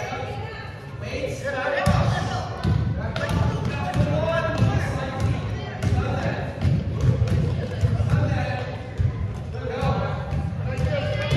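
Children shout and call out in a large echoing gym.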